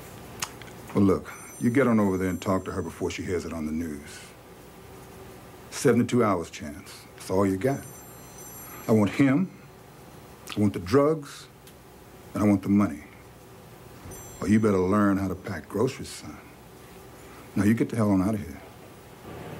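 A middle-aged man speaks calmly and close by, in short phrases.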